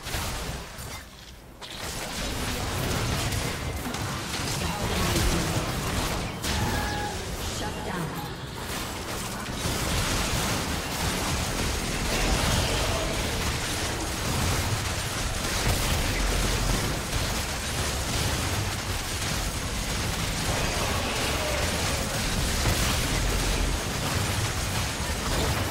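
Magic blasts and combat effects from a fantasy battle game crackle and boom.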